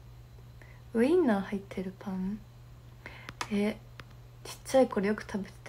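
A young woman speaks softly and casually, close to a microphone.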